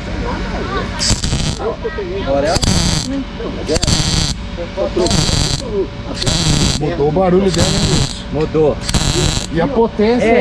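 A welding torch crackles and hisses in short bursts.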